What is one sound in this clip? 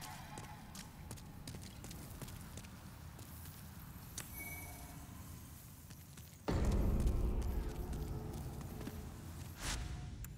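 Armoured footsteps clink on stone.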